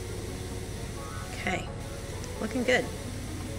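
A pressure washer hisses with a steady jet of water.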